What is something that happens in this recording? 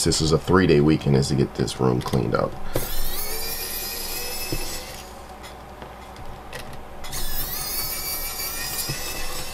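A screwdriver scrapes as it turns small screws in metal.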